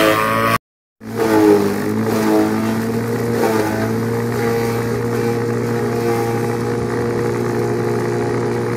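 A forage chopper motor hums steadily.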